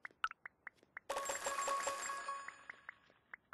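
A short bright chime rings.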